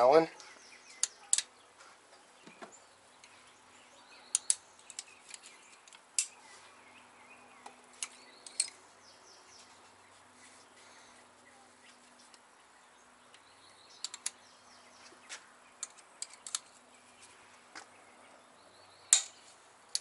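A metal wrench clicks and clinks against engine parts.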